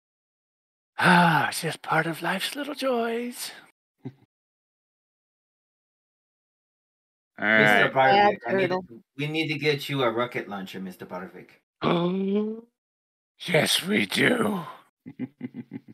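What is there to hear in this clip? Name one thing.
A middle-aged man talks with animation through an online call.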